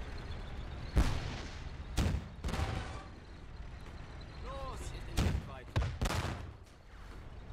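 A gun fires sharply several times.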